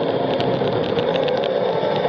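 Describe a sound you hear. A bus engine rumbles close by as it passes.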